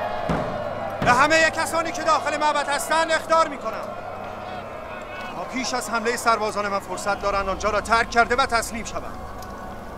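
A middle-aged man speaks sternly in a loud, commanding voice.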